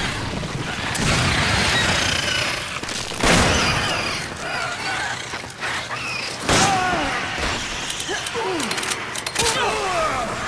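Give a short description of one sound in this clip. A handgun fires in sharp shots.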